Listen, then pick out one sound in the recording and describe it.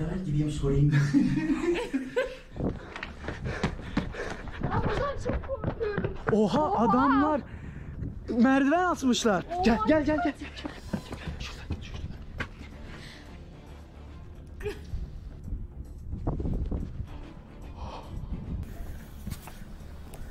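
A young girl laughs nearby.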